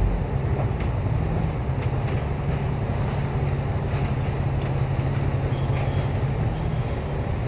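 Tram wheels rattle and clack on the rails.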